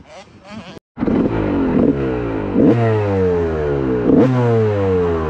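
A dirt bike engine roars close up, rising in pitch and shifting through gears again and again.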